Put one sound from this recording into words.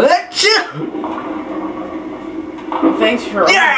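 A bowling ball rolls down a lane, heard through a television speaker.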